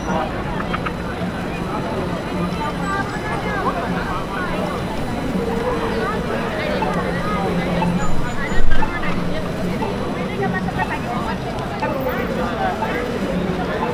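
A busy crowd of people murmurs and chatters all around outdoors.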